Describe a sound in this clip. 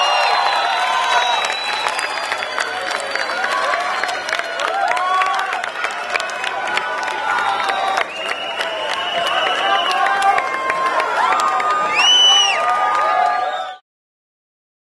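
A man sings into a microphone over a loudspeaker.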